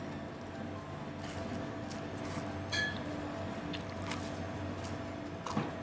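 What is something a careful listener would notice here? A young man chews and smacks his lips.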